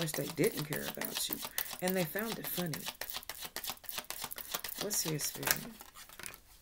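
Cards shuffle and riffle in a woman's hands.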